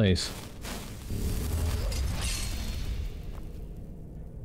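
A magic spell hums and crackles with a whooshing surge.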